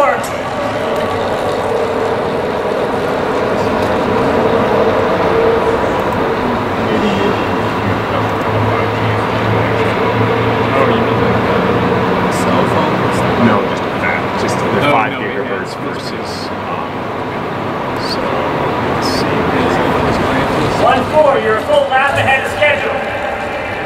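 A racing bicycle whirs past on a banked track in a large echoing hall.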